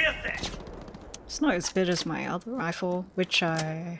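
A gun's magazine clicks and clacks during a reload.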